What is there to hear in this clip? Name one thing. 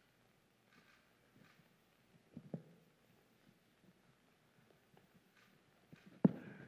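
A man speaks quietly from a distance in a room with some echo.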